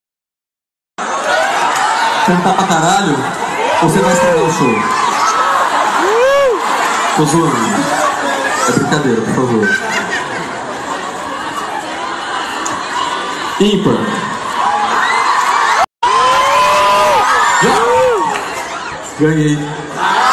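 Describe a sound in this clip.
A large crowd of young people sings along loudly outdoors.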